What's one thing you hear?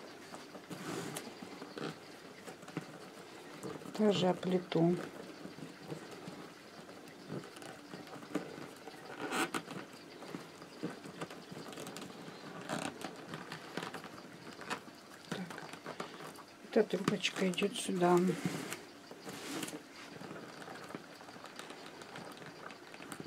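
Stiff paper strands rustle and tap as they are woven by hand.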